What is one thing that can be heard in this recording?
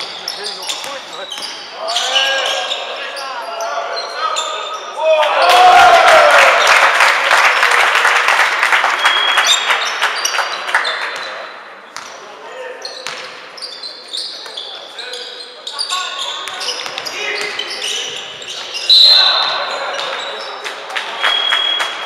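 Basketball shoes squeak on a hall floor in a large echoing hall.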